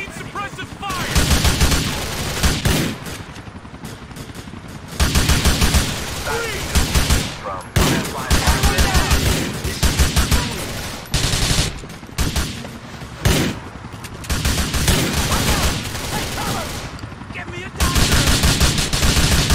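Rapid gunfire bursts ring out close by.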